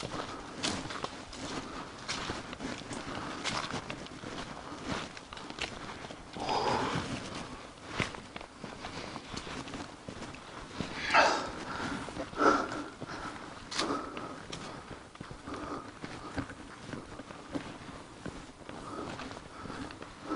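Footsteps crunch on a dirt path and dry leaves.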